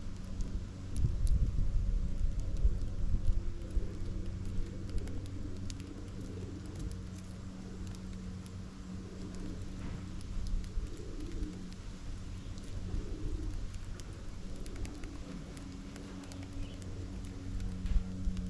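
Small birds peck and rustle among seeds on a feeder tray.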